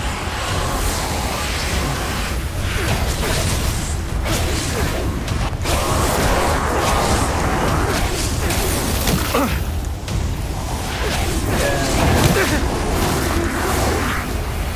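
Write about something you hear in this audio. Magic blasts crackle and whoosh.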